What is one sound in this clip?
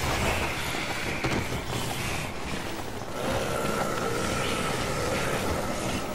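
Zombies groan and moan in a crowd.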